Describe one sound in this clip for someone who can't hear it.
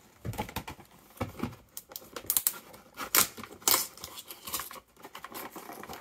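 A cardboard box rustles and taps as it is handled up close.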